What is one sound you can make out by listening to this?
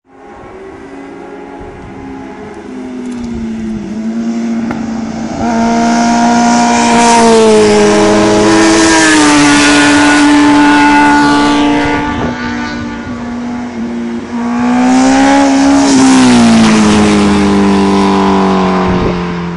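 Motorcycle engines roar loudly as bikes speed past close by and fade away.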